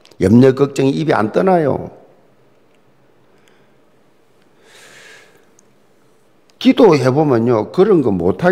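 An elderly man speaks earnestly into a microphone, his voice filling a large hall.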